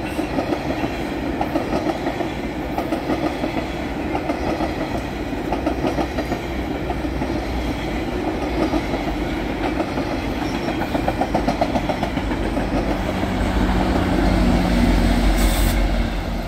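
A passenger train rolls past, its wheels clattering rhythmically over the rail joints.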